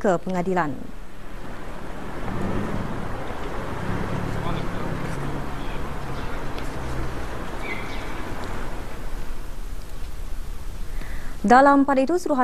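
City traffic hums steadily in the street.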